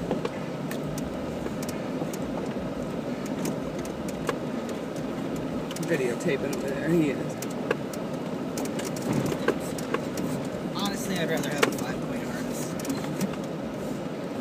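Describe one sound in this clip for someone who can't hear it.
A vehicle engine rumbles steadily while driving slowly.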